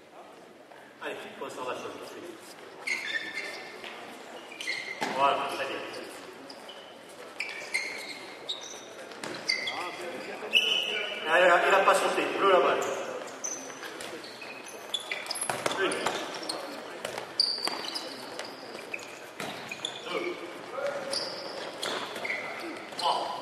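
Sneakers squeak sharply on a gym floor in an echoing hall.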